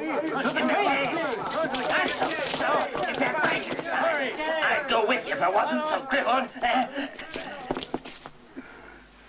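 A group of men shout and laugh loudly together, close by.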